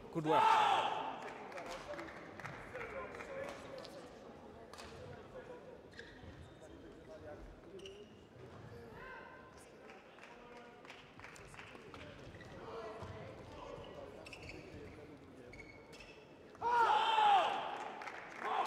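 A young man shouts loudly in an echoing hall.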